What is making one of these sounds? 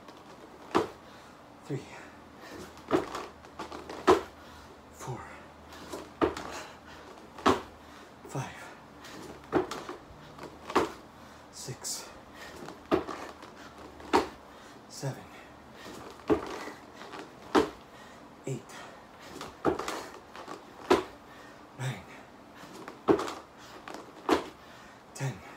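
Feet thud and land on a floor mat in a steady rhythm.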